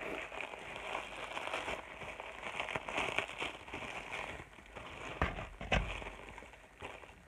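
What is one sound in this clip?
Plastic bubble wrap crinkles and rustles.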